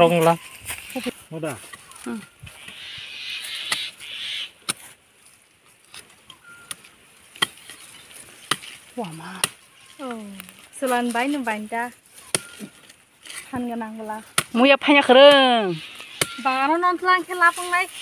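A blade knocks and scrapes into dry earth and roots.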